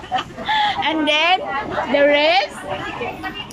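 A woman cries out in a high, rising voice.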